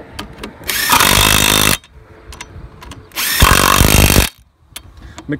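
A cordless impact wrench rattles in loud bursts as it loosens wheel nuts.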